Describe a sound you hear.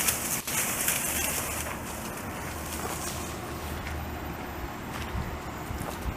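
Leaves rustle as a branch is pulled through bushes.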